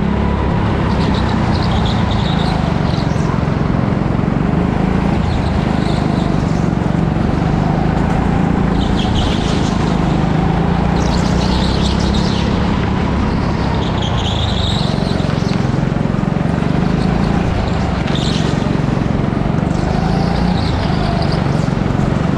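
Go-kart tyres squeal as the kart slides through corners.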